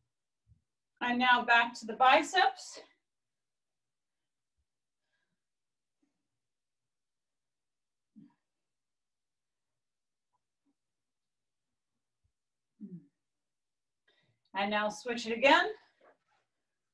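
A young woman speaks briefly and calmly nearby.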